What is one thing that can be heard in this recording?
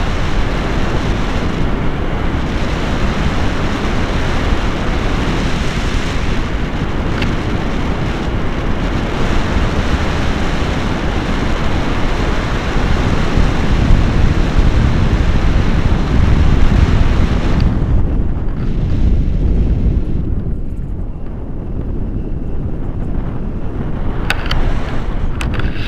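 Strong wind rushes and buffets loudly over a microphone outdoors.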